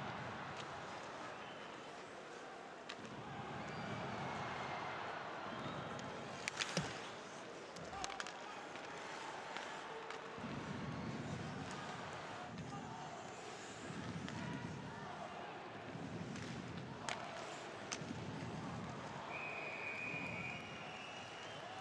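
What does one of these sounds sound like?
A crowd cheers and murmurs throughout a large echoing arena.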